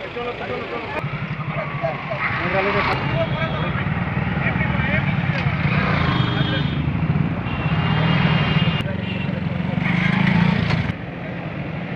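Motorcycle engines idle and rumble close by.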